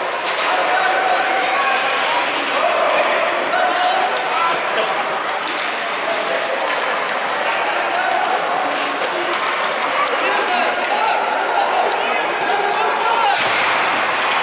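Children shout and chatter in a large echoing rink.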